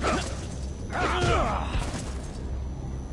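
A man grunts loudly.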